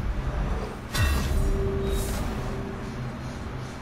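A bright chime rings with a low metallic whoosh.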